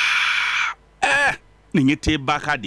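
A middle-aged man speaks with animation, close by.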